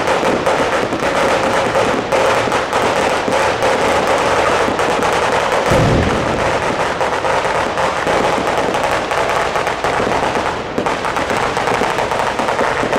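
Fireworks boom overhead.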